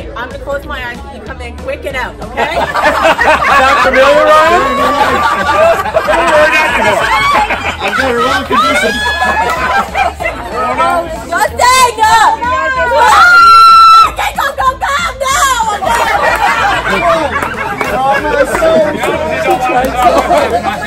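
A crowd of adults and children talks and laughs loudly outdoors.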